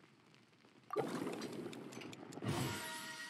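A bright shimmering flourish rings out for a successful cook.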